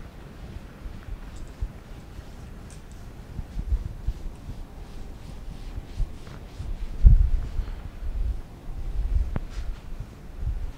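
A felt eraser rubs and squeaks across a whiteboard.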